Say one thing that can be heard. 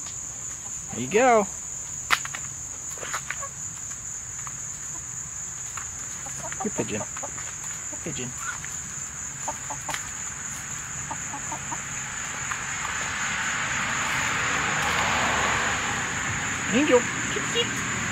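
A hen clucks briefly.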